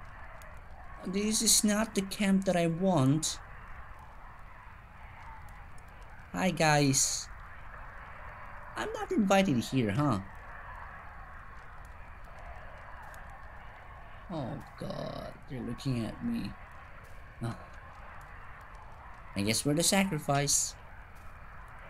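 A young woman talks with animation into a microphone, close by.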